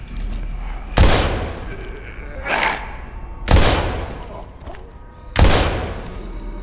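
A pistol fires loud shots that echo down a hallway.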